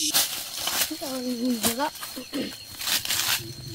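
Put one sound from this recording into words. A young boy speaks nearby.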